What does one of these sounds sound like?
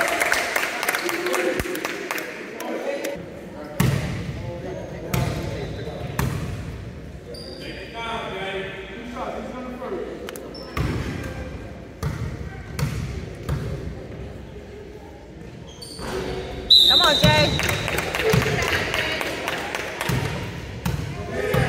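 Young players shout and call out in an echoing gym.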